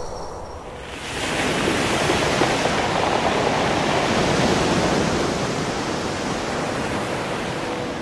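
Waves crash and wash over pebbles.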